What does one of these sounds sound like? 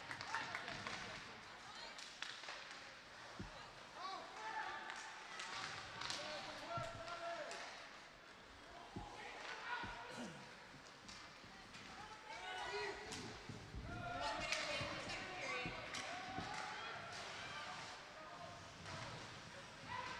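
Ice skates scrape and carve across an ice rink.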